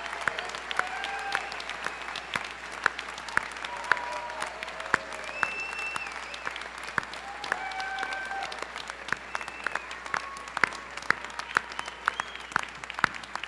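A crowd applauds in a large echoing hall.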